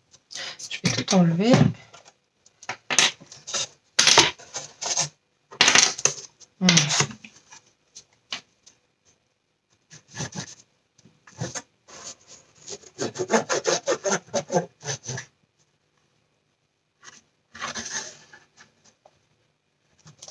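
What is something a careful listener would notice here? Hands shift and press a cardboard box, which scrapes and rustles.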